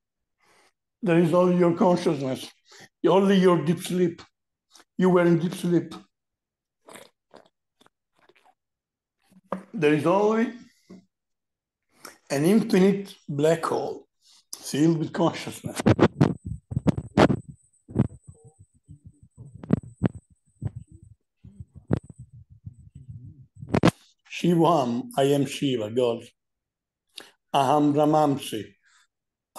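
A man speaks calmly, close to the microphone.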